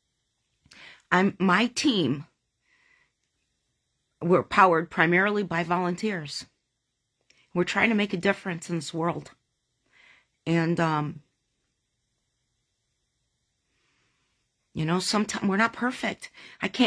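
A middle-aged woman speaks close to a phone microphone, in short bursts with long pauses.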